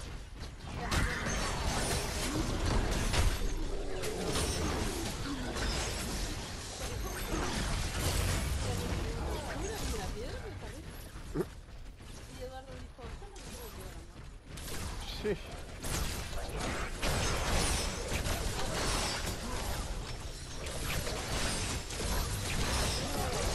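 Energy blasts crackle and thud in a fast fight.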